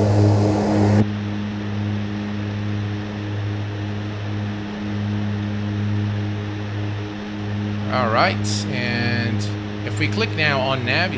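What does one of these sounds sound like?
Propeller engines hum steadily, muffled inside a small plane's cockpit.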